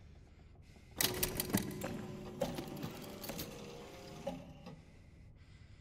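Heavy metal discs clank and grind as they turn.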